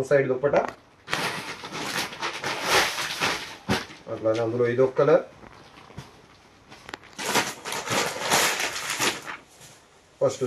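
Fabric rustles as a dress is handled and spread out.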